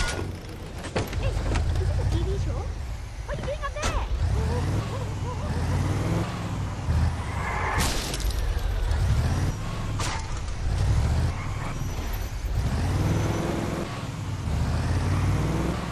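Tyres crunch over gravel and sand.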